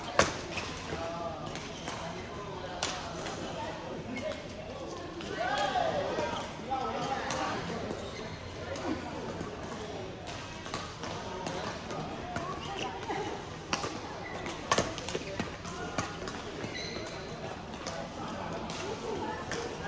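Shuttlecocks are struck with sharp pops of rackets in a large echoing hall.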